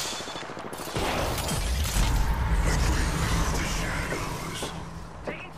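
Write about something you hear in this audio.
A large metal pod roars down with a deep rumble.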